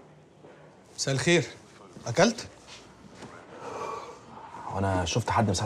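A man speaks loudly and tensely nearby.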